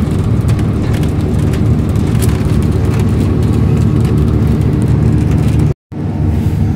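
Loose panels rattle and click inside a moving bus.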